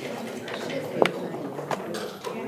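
A clock button is pressed with a click.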